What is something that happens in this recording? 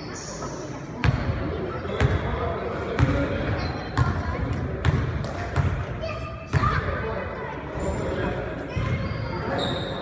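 A basketball bounces on a hard floor in a large echoing gym, with regular thuds.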